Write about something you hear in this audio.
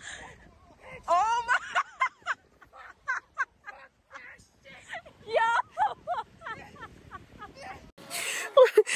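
Young women shout and laugh in the distance outdoors.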